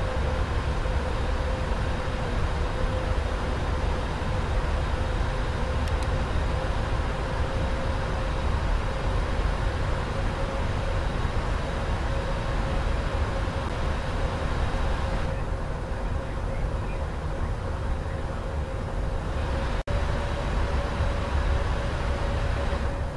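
Jet engines roar steadily with a low rumble.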